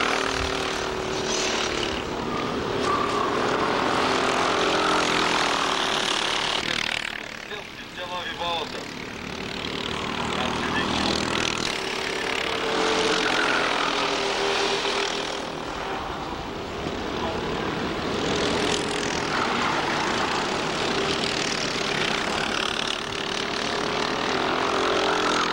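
Small kart engines buzz and whine loudly as they race past.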